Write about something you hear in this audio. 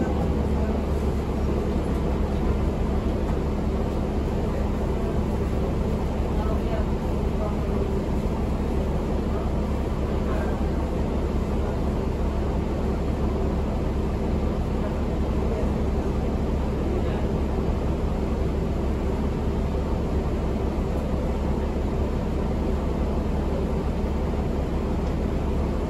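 A bus engine hums and rumbles steadily while the bus drives.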